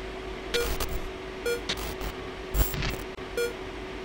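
Bursts of crackling static break in.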